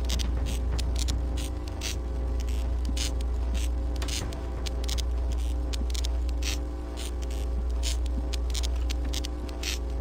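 An electric weapon crackles and buzzes in sharp bursts.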